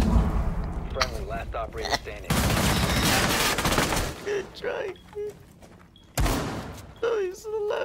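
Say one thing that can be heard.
A young man talks with animation through a headset microphone.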